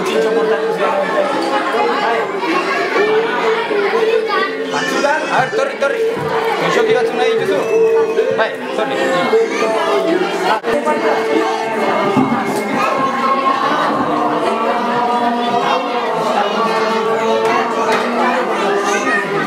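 A man speaks softly and warmly up close to a young child.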